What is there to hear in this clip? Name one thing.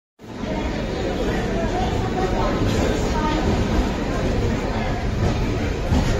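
A crowd murmurs on a busy platform.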